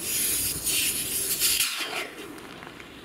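Air hisses loudly out of an inflatable tent.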